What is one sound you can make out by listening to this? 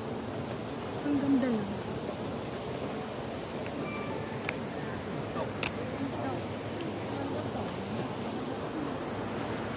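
A young woman talks softly close by.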